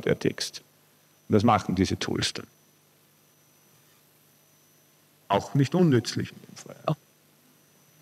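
A man speaks through a microphone in short bursts.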